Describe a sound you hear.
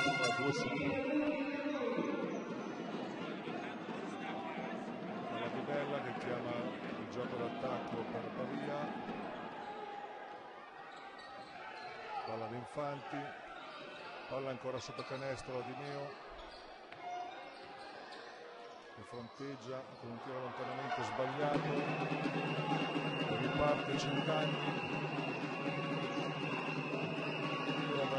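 A crowd of spectators murmurs and cheers in a large echoing hall.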